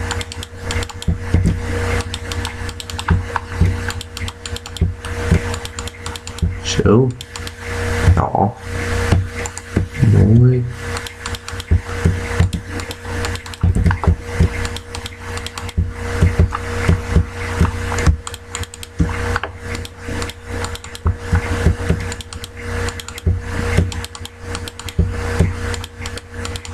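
Stone blocks clack one after another as they are placed.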